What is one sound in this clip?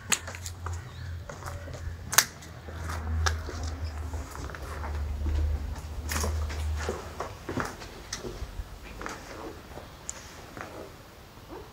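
Footsteps walk over a hard floor.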